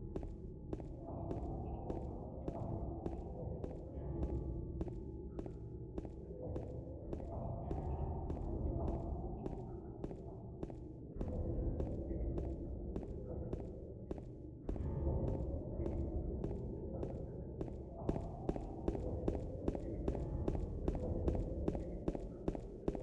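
Footsteps tap steadily on a hard floor, quickening to a run.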